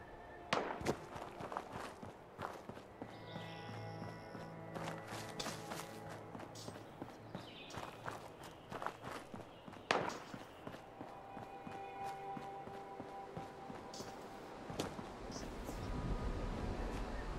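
Footsteps scrape and crunch over rock and gravel.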